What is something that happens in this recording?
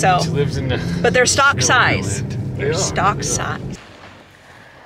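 A young woman talks with animation close by inside a car.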